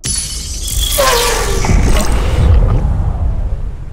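Fireworks whistle and boom.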